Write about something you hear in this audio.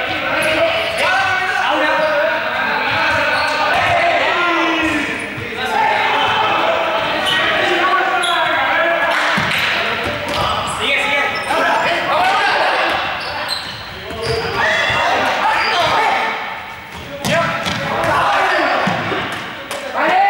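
A ball bounces on a hard floor.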